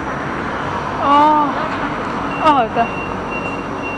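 A young woman speaks briefly, close by.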